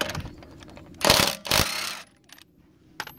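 A cordless impact driver rattles loudly as it loosens a lug nut.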